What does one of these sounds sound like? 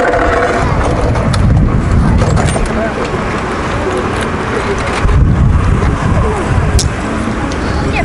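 Wind buffets a microphone outdoors in gusts.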